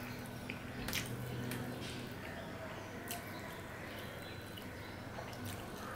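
A man chews and smacks his lips close by.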